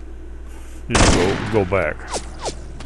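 A rifle fires a short burst at close range.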